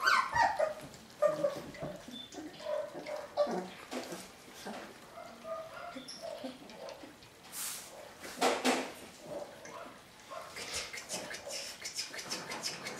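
Puppies whine and squeak.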